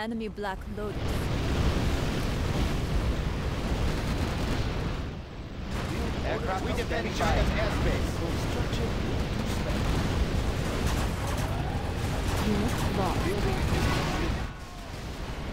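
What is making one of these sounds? Explosions boom and rumble heavily.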